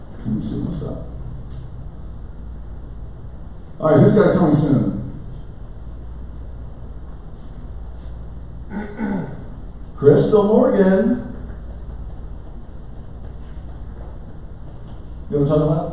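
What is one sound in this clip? A man speaks calmly into a microphone, heard through loudspeakers in a large echoing room.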